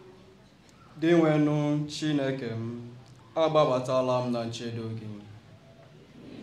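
A young man reads aloud loudly into a microphone.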